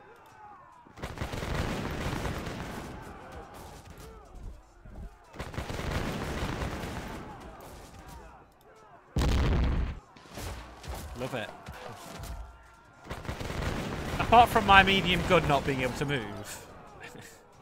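Musket volleys crack and rumble in bursts.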